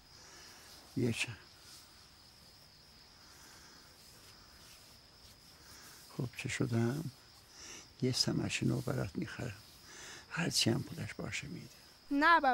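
An elderly man speaks weakly in a hoarse voice, close by.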